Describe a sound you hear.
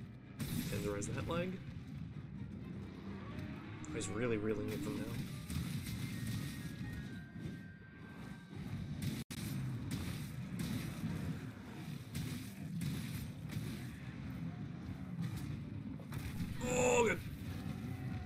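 Heavy blade strikes thud against a huge beast.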